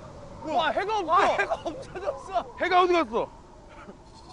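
A young man exclaims loudly with excitement, close by.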